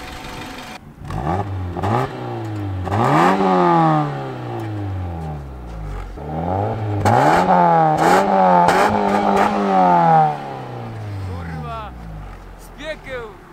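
A car engine revs up and down repeatedly, its exhaust roaring.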